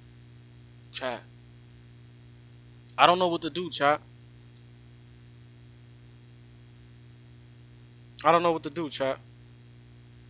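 A young man speaks close to a microphone in short, excited bursts.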